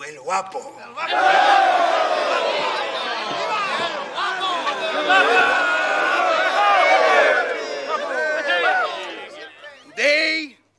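A crowd of men cheers and shouts loudly.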